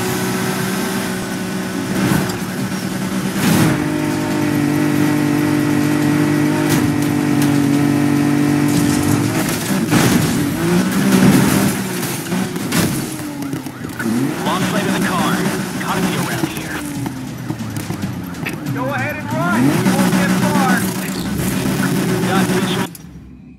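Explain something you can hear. A car's exhaust pops and crackles.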